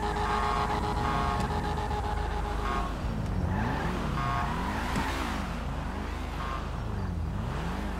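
Car engines idle and rev up and down nearby.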